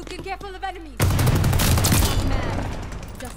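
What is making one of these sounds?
A rocket launcher fires with a loud, booming blast.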